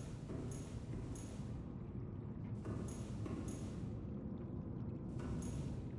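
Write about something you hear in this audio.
A glowing energy field hums with a low, steady drone.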